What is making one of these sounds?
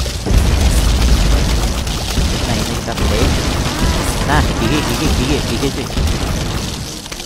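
Video game effects thump and pop rapidly and continuously.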